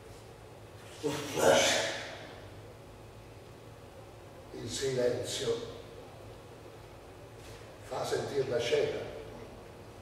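A second man answers in short, loud bursts.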